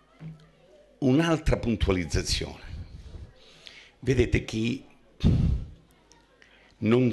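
An elderly man speaks forcefully into a microphone through loudspeakers.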